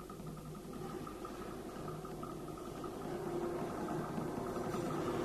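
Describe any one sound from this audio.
A small ensemble plays rapid, rhythmic percussion in a large hall, growing louder.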